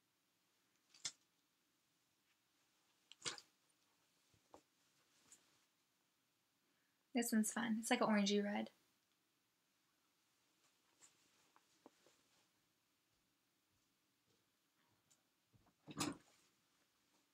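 Soft wool yarn rustles as it is handled.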